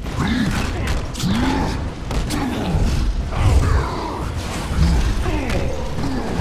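Deep monstrous roars and growls come in short bursts.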